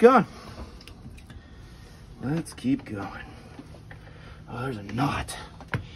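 A wooden mallet knocks on a tool's handle.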